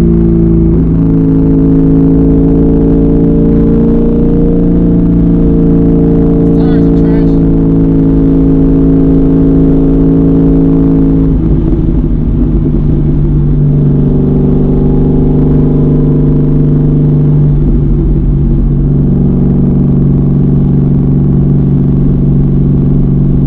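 A car engine drones loudly and steadily, heard from inside the car.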